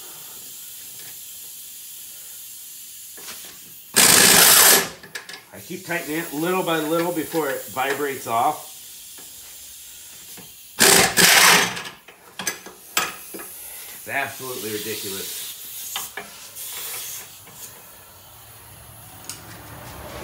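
Metal tools clink and knock against car parts.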